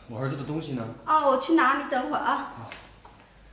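A woman speaks sharply and with agitation, close by.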